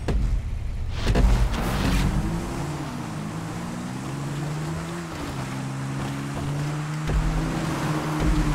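Quad bike and dirt bike engines rev as they pull away.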